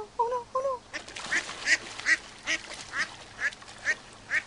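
A duck splashes and flaps in shallow water.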